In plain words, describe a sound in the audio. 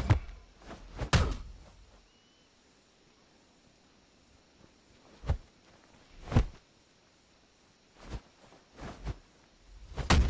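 Whooshing swings cut through the air.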